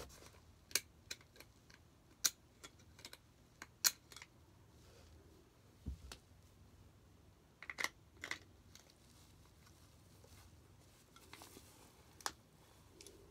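Small plastic parts click and tap as a man handles a toy.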